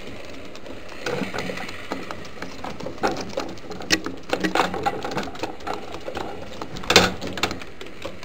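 Pigeons flap their wings in a brief scuffle, close by.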